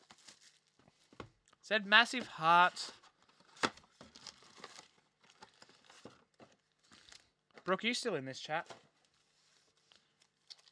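Plastic packs click and tap as hands handle them.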